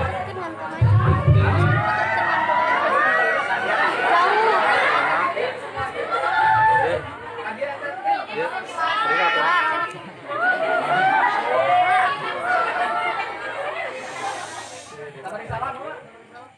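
Several children talk and call out loudly over one another nearby.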